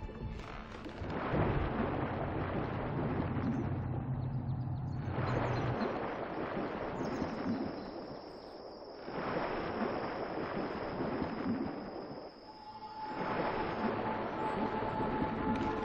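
Water swishes around the hull of a sailing ship as it moves.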